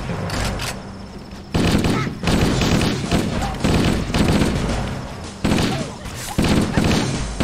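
Energy blasts crackle and explode.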